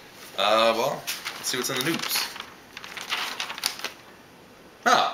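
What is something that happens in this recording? Newspaper pages rustle and crinkle as they are turned.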